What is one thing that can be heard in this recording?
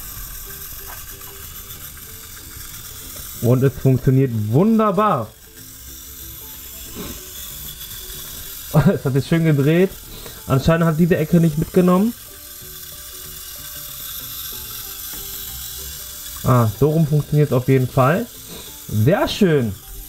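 A small toy motor whirs softly.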